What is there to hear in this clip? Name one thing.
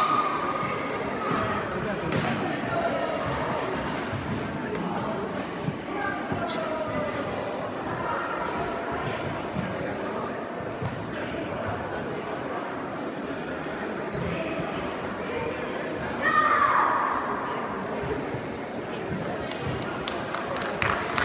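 A crowd of people chatter throughout a large echoing hall.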